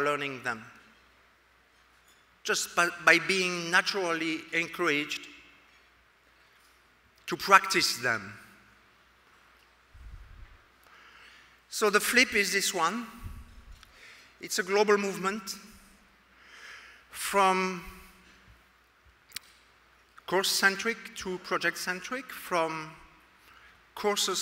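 A middle-aged man speaks calmly into a microphone, pausing often.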